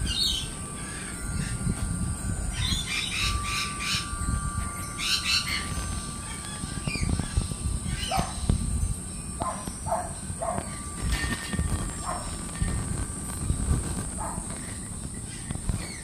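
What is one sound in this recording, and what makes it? Birds chirp and warble nearby.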